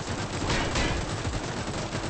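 A game explosion bursts with a short boom.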